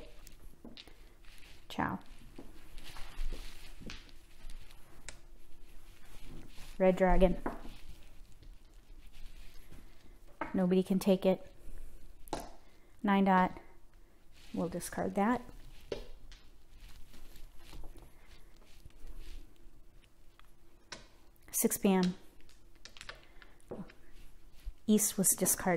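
Plastic game tiles click and clack as a hand picks them up and sets them down.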